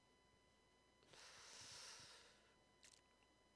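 Clothing rustles against a microphone.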